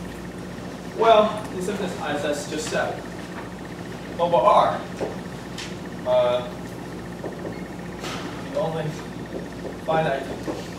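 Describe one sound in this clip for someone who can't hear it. A young man speaks calmly, as if lecturing.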